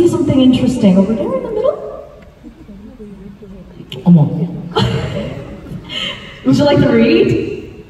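A young woman speaks with animation into a microphone, heard over loudspeakers.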